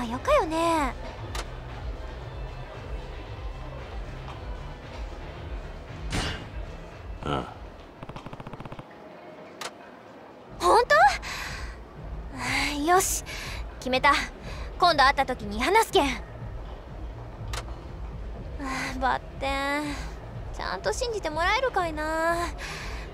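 A young woman speaks expressively in a bright, animated voice.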